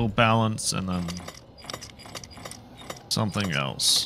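A combination lock dial clicks as it turns.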